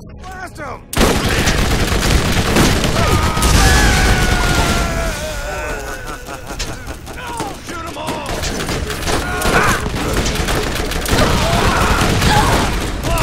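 A gun fires in rapid loud bursts.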